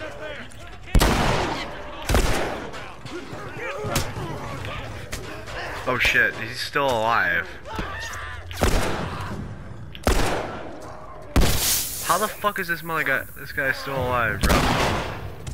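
Gunshots fire loudly, one at a time.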